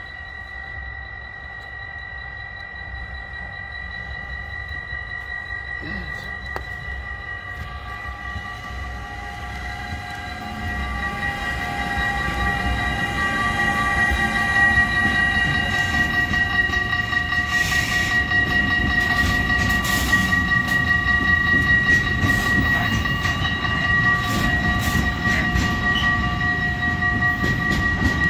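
A level crossing bell rings steadily.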